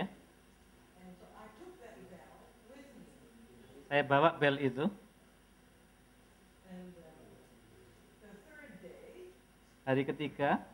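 An elderly woman speaks calmly, heard faintly from a little distance.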